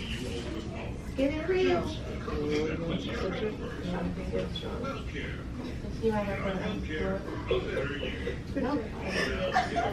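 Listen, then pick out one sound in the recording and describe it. A woman speaks calmly to a small group nearby.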